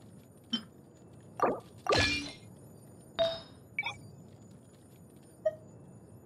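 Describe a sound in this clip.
Short game menu chimes and clicks sound now and then.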